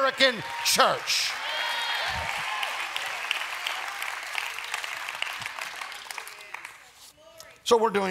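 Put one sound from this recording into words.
A large audience laughs.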